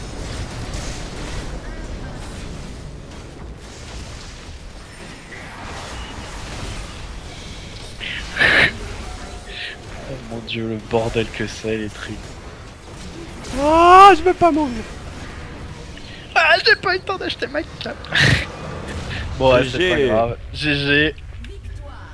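Video game battle effects crackle and blast.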